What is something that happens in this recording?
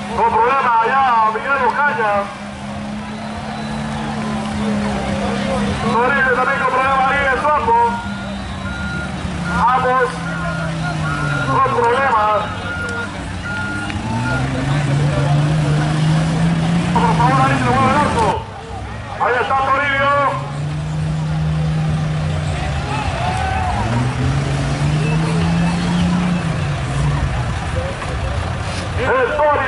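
A truck engine revs hard, rising and falling over and over.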